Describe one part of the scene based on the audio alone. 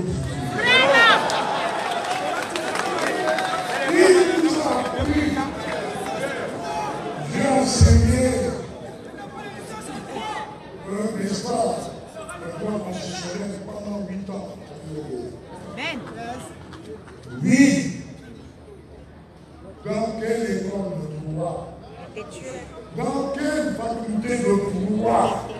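A man speaks forcefully into a microphone over loudspeakers outdoors.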